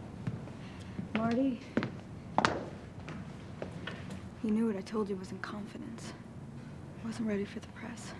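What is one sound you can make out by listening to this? A young woman speaks quietly and coolly, close by.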